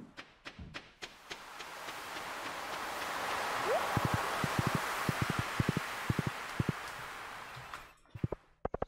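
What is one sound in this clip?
Waves wash softly against a shore.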